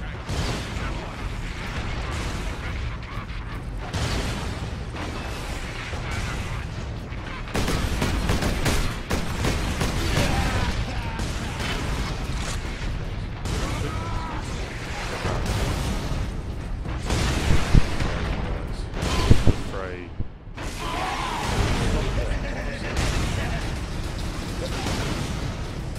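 Heavy armoured footsteps thud on a hard floor.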